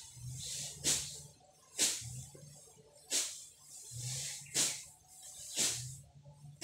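A blade chops into plant stalks with sharp, regular strikes.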